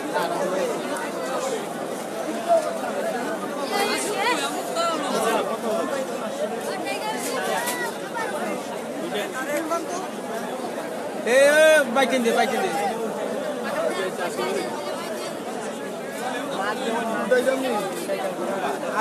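A crowd of men and women talk and call out all around, close by and busy.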